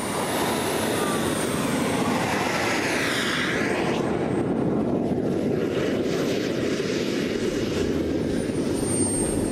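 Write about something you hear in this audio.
A model jet's turbine engine whines and roars as the jet taxis away.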